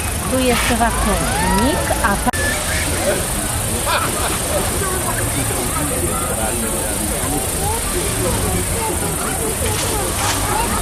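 A crowd of men, women and children chatters and calls out nearby outdoors.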